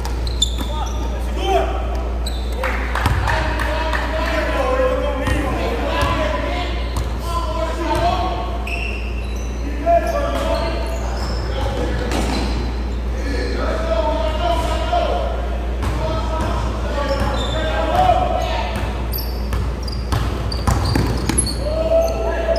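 Young men call out and shout to each other.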